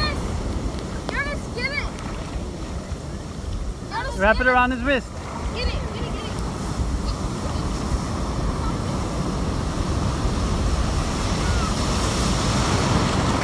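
Ocean surf breaks and washes around close by.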